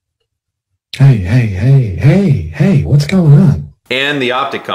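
A man wails and sobs loudly.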